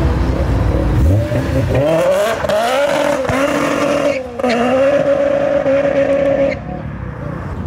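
A sports car engine revs hard and loud as the car accelerates away.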